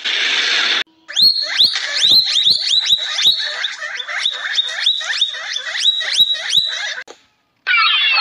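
Prairie dogs chirp sharply.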